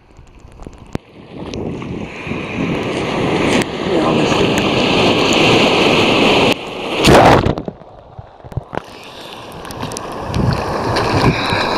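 Water splashes against a swimmer.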